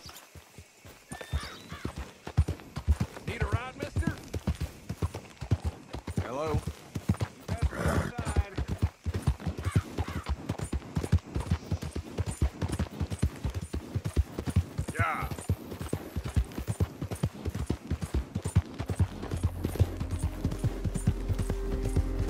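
Horse hooves clop and pound steadily at a fast gallop.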